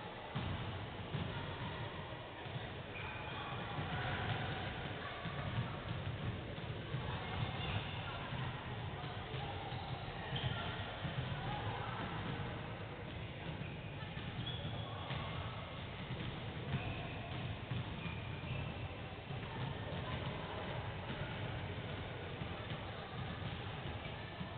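Players call out and chat across the echoing hall.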